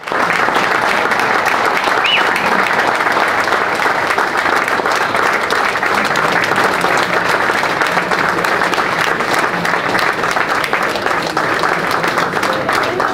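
A crowd murmurs and chatters throughout a large echoing hall.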